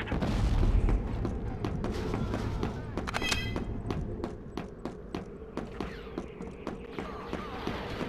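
Footsteps thud quickly on a hard floor.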